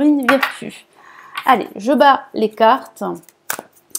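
A deck of cards is set down on a table with a soft tap.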